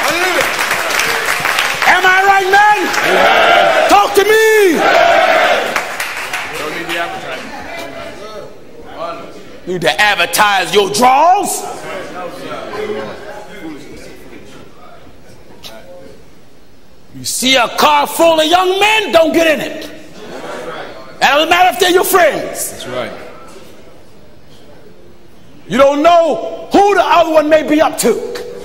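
A man preaches with fervour through a microphone, shouting in bursts in a large hall.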